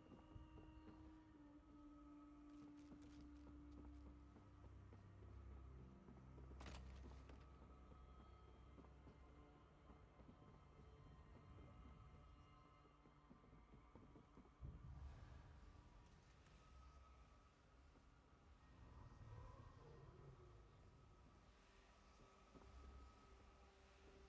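Low game music plays steadily.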